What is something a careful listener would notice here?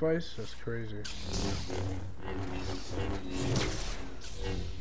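An energy blade hums and swooshes as it swings.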